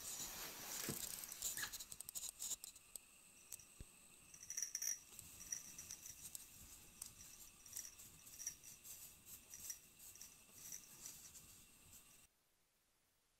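A dog scrapes and scratches at ice with its paws.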